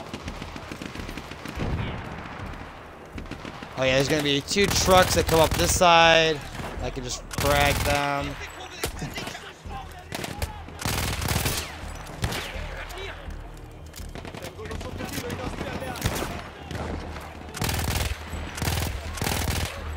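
A submachine gun fires in rapid bursts.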